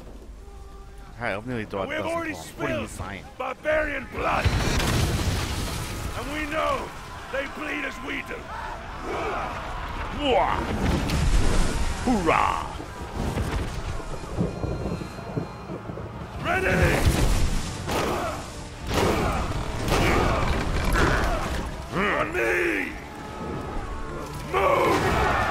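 A man speaks loudly and forcefully, close by.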